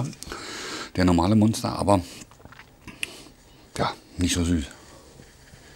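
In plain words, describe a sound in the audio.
A man speaks casually close by.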